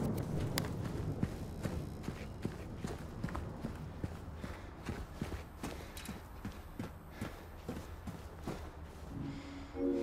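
Footsteps walk steadily on a hard floor.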